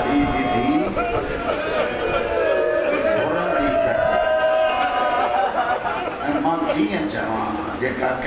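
A man chants loudly and mournfully into a microphone, heard through loudspeakers.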